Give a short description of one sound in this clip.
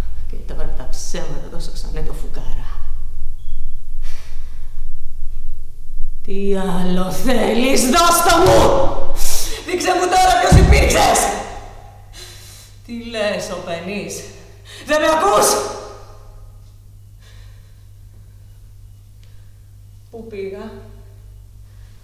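A young woman speaks with strong emotion, close by.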